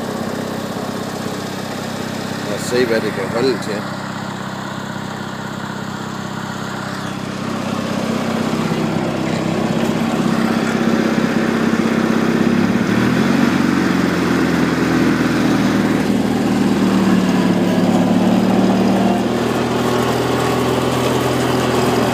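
A riding mower engine runs steadily close by.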